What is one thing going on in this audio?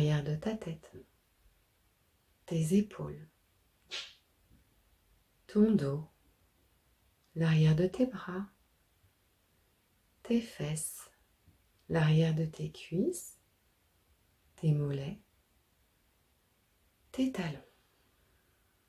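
A middle-aged woman speaks calmly and clearly close to the microphone, in short phrases with pauses.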